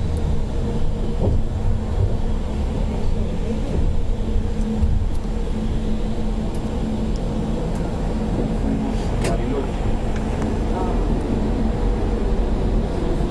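A small rail car rumbles and hums steadily along an elevated track.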